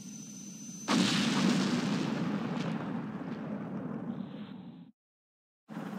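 A huge explosion booms and roars, then slowly dies away.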